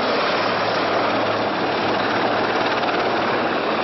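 A helicopter's rotor thuds loudly nearby.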